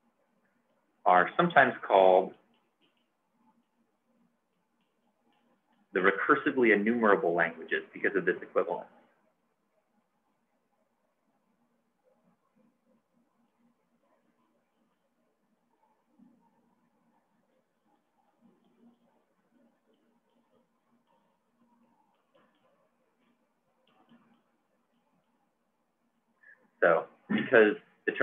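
A man speaks calmly and clearly into a microphone, with pauses.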